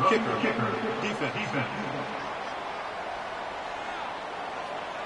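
A large crowd murmurs in a stadium.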